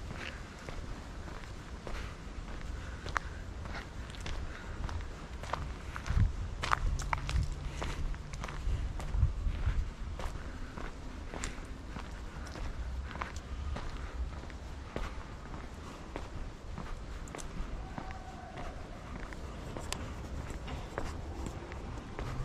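Footsteps tread steadily along a paved path outdoors.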